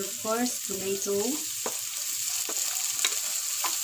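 Chopped tomatoes drop into a pan.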